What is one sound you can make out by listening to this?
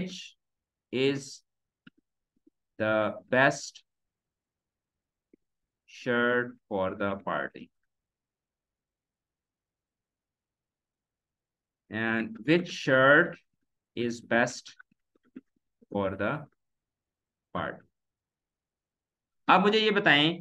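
A young man speaks calmly into a microphone, pausing between phrases.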